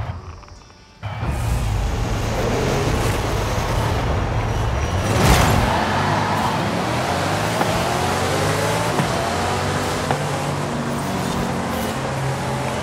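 A sports car engine roars and revs up as the car accelerates.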